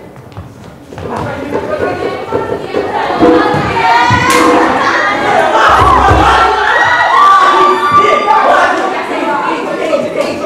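Several young people sing together in a large hall.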